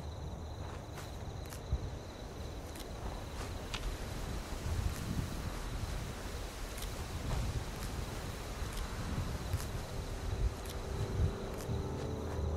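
Leafy plants rustle as berries are picked.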